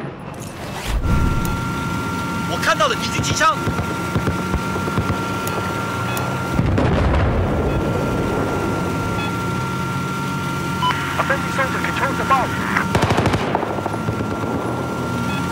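A small drone hums steadily.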